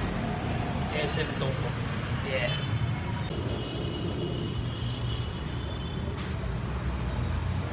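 A low steady hum of a busy indoor hall fills the background.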